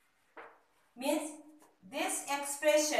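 A woman speaks clearly, explaining, close by.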